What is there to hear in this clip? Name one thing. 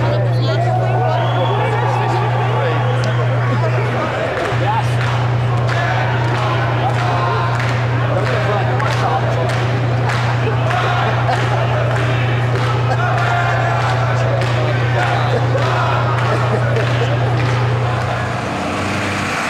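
A crowd of men and women shouts and chants outdoors nearby.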